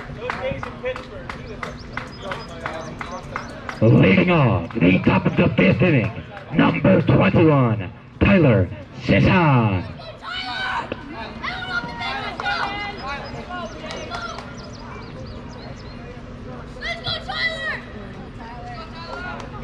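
Several men talk and call out across an open field.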